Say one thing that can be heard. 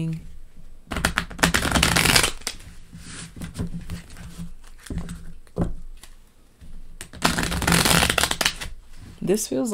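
Playing cards are shuffled with a quick, rustling riffle.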